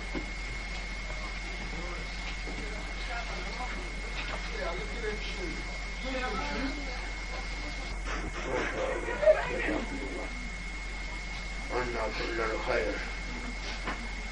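An elderly man reads aloud slowly, close by.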